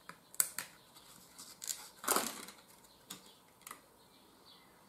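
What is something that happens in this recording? Plastic packaging rustles and crinkles in hands.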